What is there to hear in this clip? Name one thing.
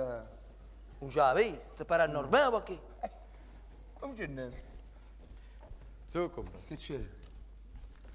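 An older man speaks loudly and expressively.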